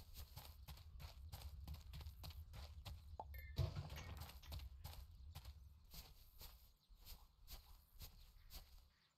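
Footsteps patter quickly and steadily on dirt.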